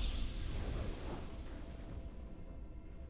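A triumphant game fanfare swells and fades out.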